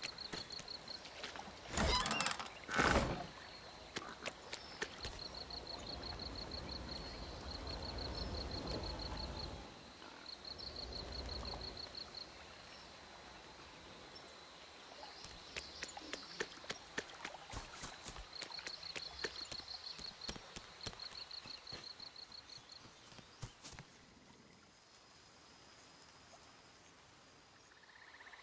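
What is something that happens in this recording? A character's footsteps patter on grass and wooden planks.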